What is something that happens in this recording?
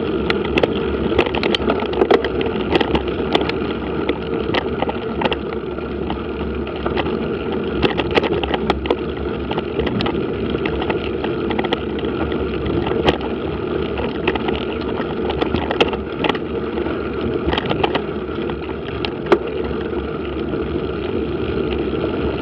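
Tyres roll steadily over a dirt and gravel track.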